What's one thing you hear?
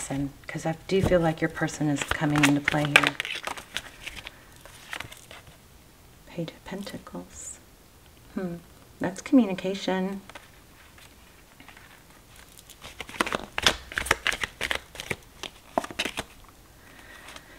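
Cards shuffle with quick papery flicks and taps.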